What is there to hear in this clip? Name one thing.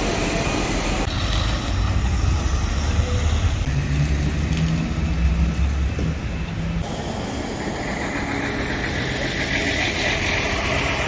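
City traffic hums outdoors in wind.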